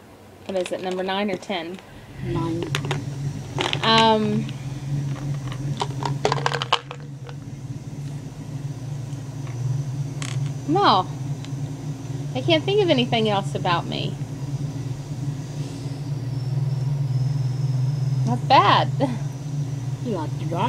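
A woman speaks and vocalizes close by, with animated, sing-song sounds.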